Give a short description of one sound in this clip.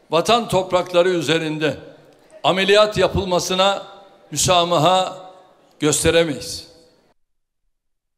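An elderly man speaks forcefully into a microphone in a large echoing hall, in short bursts.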